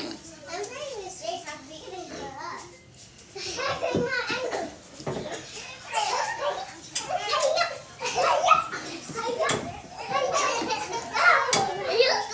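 A young woman crunches on food while eating.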